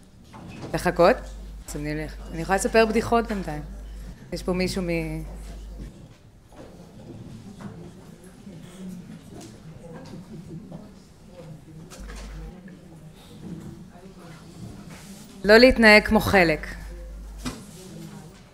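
A young woman speaks into a microphone with animation, heard through a loudspeaker in a large room.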